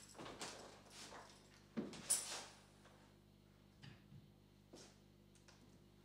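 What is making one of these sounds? A man shuffles and handles equipment close by, with soft knocks and rustles.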